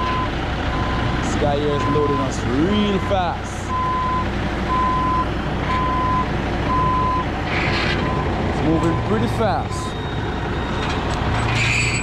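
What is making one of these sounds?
A diesel engine rumbles steadily nearby.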